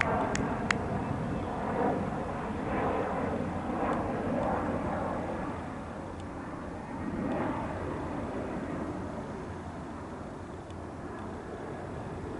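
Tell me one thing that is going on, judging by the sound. Men talk to one another nearby outdoors.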